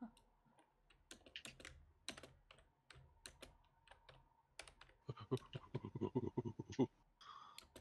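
Quick knife chops knock sharply.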